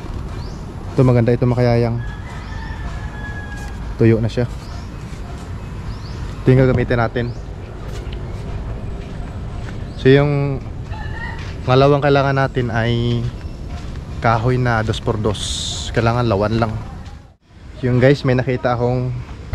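A young man speaks close by in short bursts.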